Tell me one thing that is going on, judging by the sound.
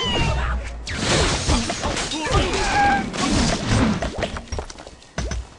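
Wooden and glass blocks crash and clatter.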